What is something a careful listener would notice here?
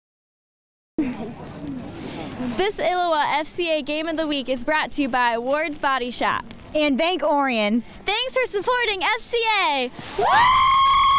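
Young women speak together with excitement into a microphone close by.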